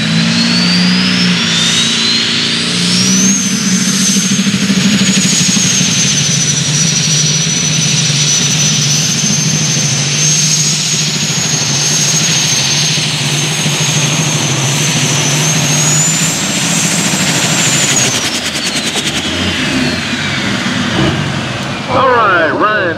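A tractor engine roars loudly at full throttle, then winds down.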